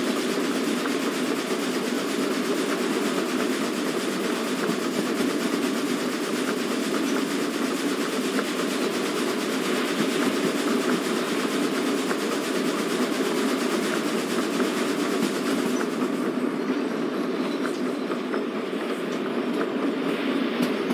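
A steam locomotive rumbles and chugs steadily.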